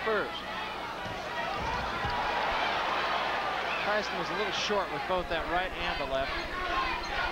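A large crowd cheers and roars in a big arena.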